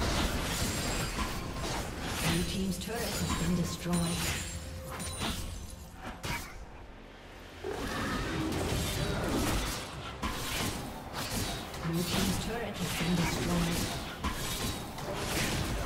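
Video game blows thud.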